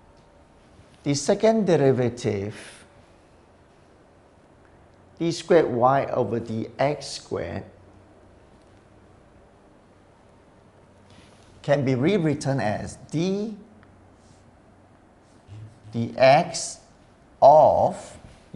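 A middle-aged man explains calmly into a close microphone, speaking in bursts with pauses.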